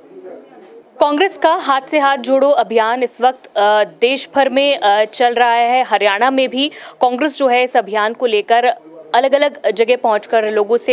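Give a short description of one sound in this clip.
A young woman speaks steadily and clearly into a close microphone.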